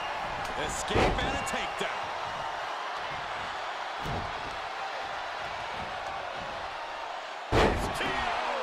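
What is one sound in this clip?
Heavy bodies thud onto a wrestling mat.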